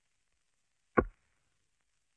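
A knock sounds on a wooden door.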